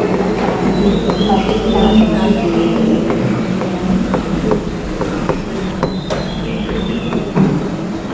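A man speaks steadily, as if teaching.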